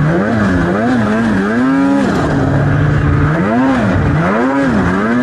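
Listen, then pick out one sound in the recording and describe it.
A snowmobile engine roars loudly close by, revving up and down.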